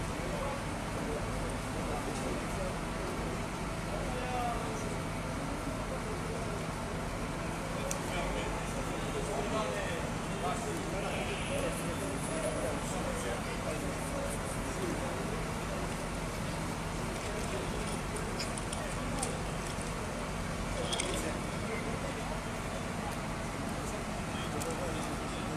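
Men talk at a distance.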